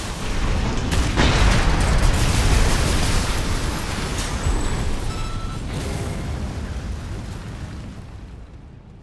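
A huge explosion booms and rumbles, then slowly fades.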